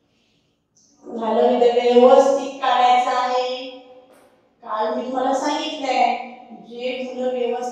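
A young woman speaks clearly and melodically, close by.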